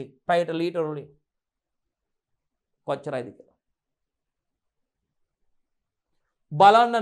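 A man speaks calmly into a close microphone, explaining in short phrases.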